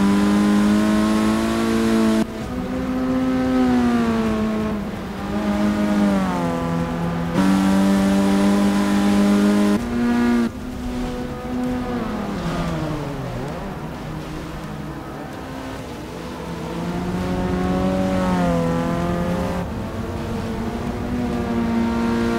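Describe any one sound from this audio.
Rain hisses steadily on a wet track.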